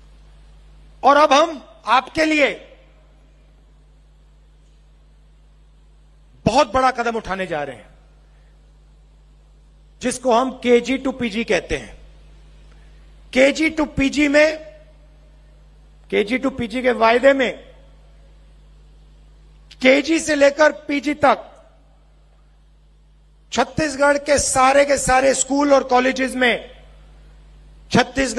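A middle-aged man gives a speech through a microphone and loudspeakers outdoors, in short forceful phrases with pauses between them.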